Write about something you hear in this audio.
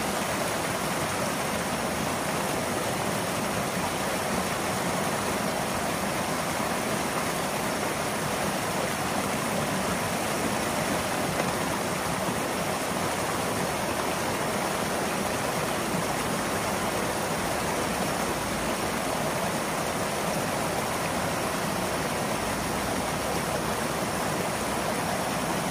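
Water gushes and splashes steadily from a pipe into a shallow ditch, close by.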